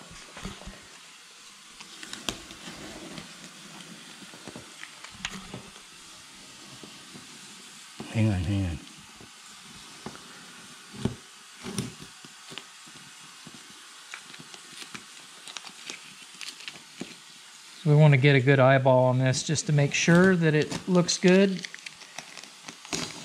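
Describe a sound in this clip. Masking tape crinkles and tears as it is peeled.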